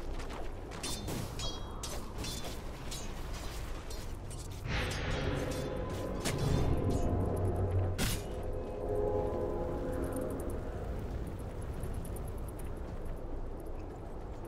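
Fiery magic effects whoosh and crackle.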